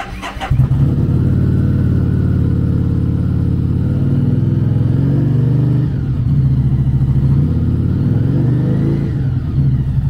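A motorcycle engine starts and idles with a deep, rumbling pulse.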